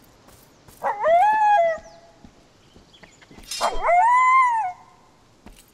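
A wolf howls loudly, twice.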